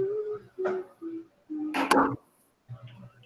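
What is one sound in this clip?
A young woman speaks briefly through an online call.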